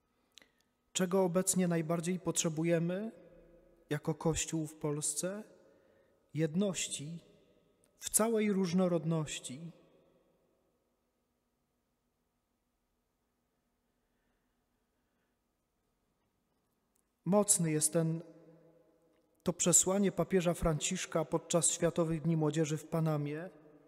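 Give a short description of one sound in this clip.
A man speaks calmly into a microphone in a large, echoing room.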